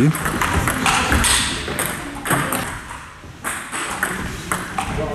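A table tennis ball clicks sharply against paddles and the table in a quick rally.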